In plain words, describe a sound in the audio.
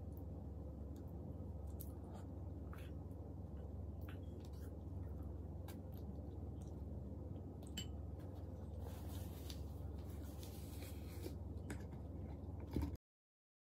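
A woman chews food close up.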